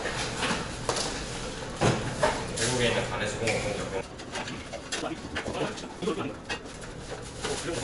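Cardboard boxes rustle and thump as they are handled.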